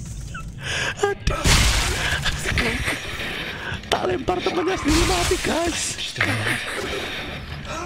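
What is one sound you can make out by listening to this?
A young man laughs loudly and heartily close to a microphone.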